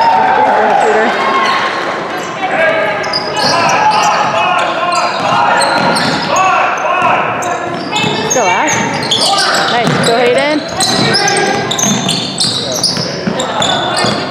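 A basketball bounces with dull thuds on a wooden floor.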